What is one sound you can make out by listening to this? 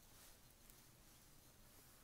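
Paper rustles softly under a hand.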